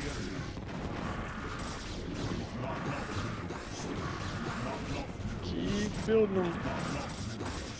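Game weapons zap and blast in a busy battle.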